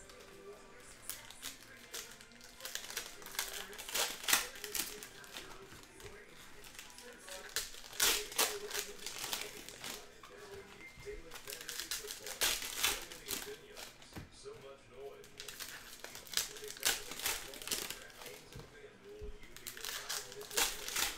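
Foil card wrappers crinkle and rustle as they are torn open.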